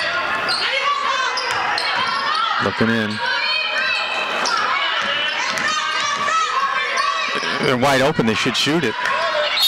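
A crowd in a large echoing gym cheers and shouts.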